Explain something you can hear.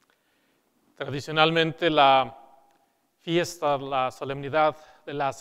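A man speaks calmly into a clip-on microphone in an echoing hall.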